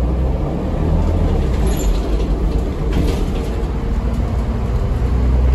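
The bus rattles and clatters as it drives.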